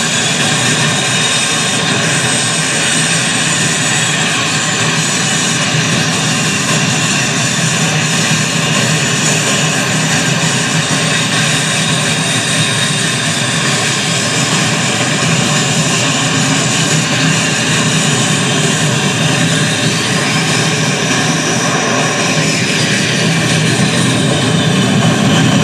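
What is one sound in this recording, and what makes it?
A jet engine roars and whines steadily as a fighter jet taxis slowly.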